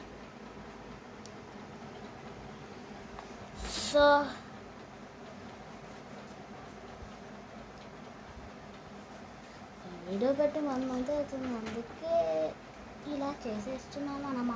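A marker scratches softly across paper.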